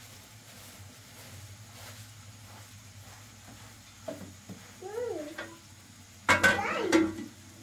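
A spoon scrapes and clinks against a plastic bowl.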